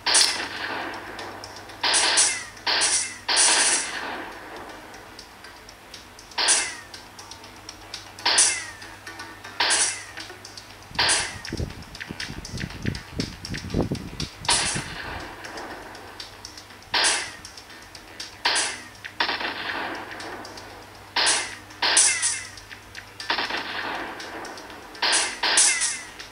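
Video game sound effects burst out in short crashes and booms from a tablet speaker.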